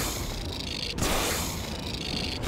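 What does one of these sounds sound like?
A creature is struck with a heavy blow.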